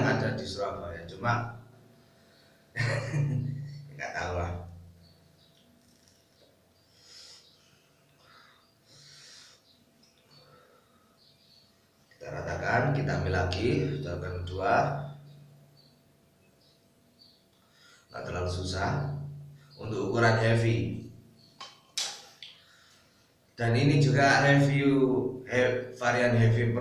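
A young man talks with animation close by, in a small echoing room.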